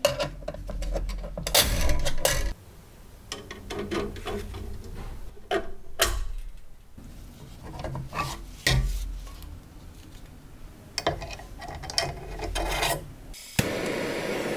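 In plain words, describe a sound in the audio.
A screwdriver scrapes and clinks against a coiled steel spring.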